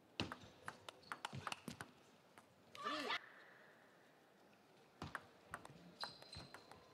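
A ping-pong ball clicks sharply back and forth off paddles and a table.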